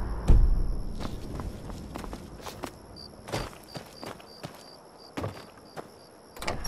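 Footsteps thud on wet ground.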